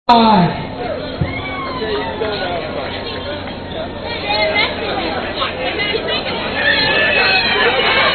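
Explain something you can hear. A crowd of men and women chatter and shout outdoors.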